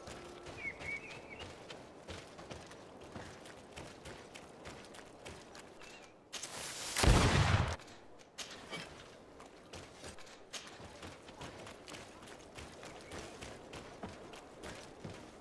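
Footsteps crunch quickly over dry ground.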